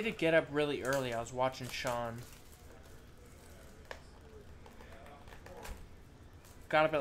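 A plastic wrapper crinkles as hands tear it open.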